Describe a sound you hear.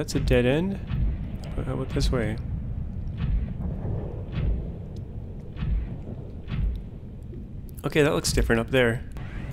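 A small submarine's engine hums low and steady underwater.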